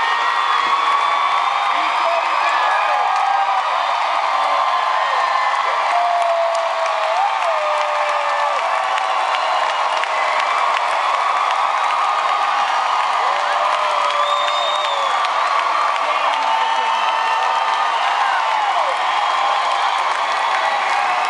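Many people in a crowd sing along loudly.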